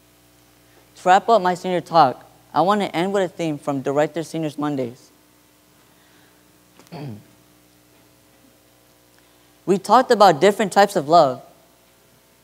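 A young man speaks calmly through a microphone, with a slight echo of a large hall.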